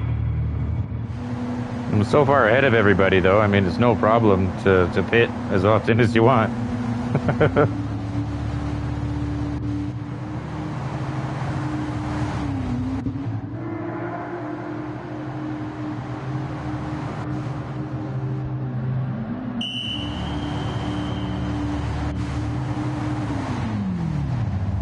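A race car engine hums steadily.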